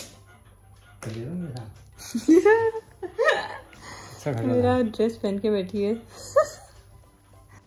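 Young women talk and laugh close by.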